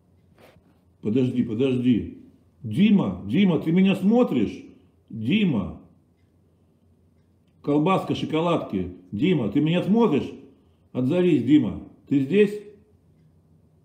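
A middle-aged man speaks earnestly and close up, as if into a phone microphone.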